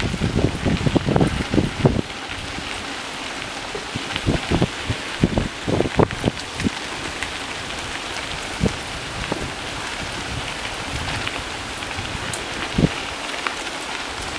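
Bicycle tyres crunch over a gravel path.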